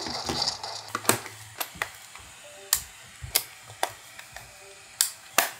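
Plastic controllers snap and click into place on a handheld device.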